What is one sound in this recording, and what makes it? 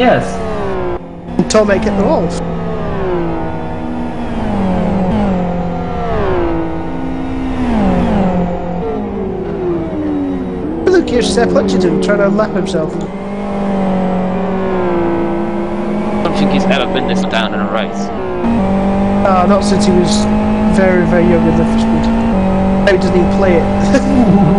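Racing car engines roar loudly, rising and dropping in pitch with each gear change.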